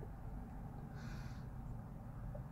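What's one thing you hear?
A man blows out smoke in a long, breathy exhale.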